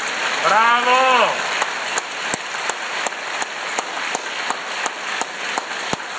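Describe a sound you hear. A large audience applauds in an echoing hall.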